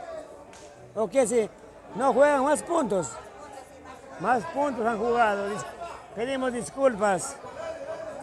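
Men in a nearby crowd shout loudly and excitedly.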